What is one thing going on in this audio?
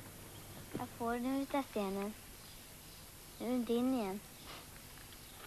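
A young boy talks close by.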